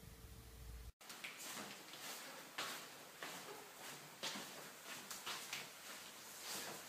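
A mop swishes and bumps across a wooden floor.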